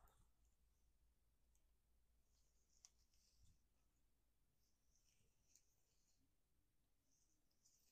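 Latex gloves crinkle against hair.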